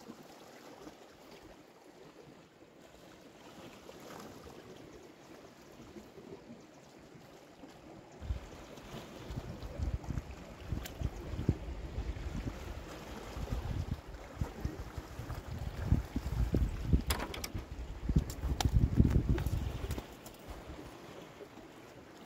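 Small waves lap against rocks.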